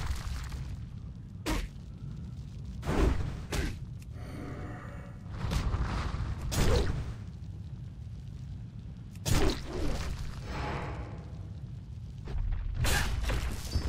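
Sword blows thud against a stone creature in a fight.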